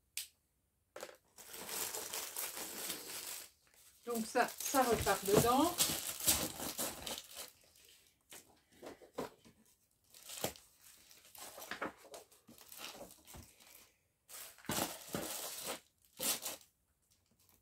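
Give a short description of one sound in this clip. Paper and plastic sleeves rustle and shuffle as they are handled.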